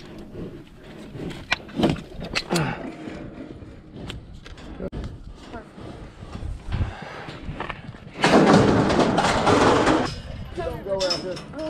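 Metal gates of a livestock chute clank.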